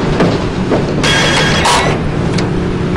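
A ticket machine beeps.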